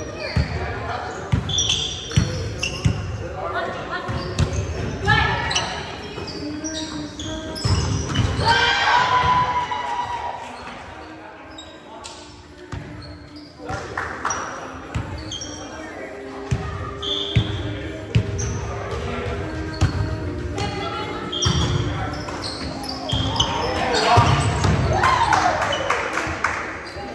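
Young men and women call out and shout in a large echoing hall.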